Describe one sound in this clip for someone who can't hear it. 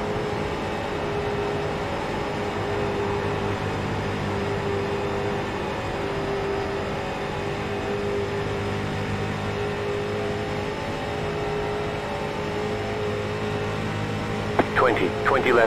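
Racing car engines drone steadily at high revs.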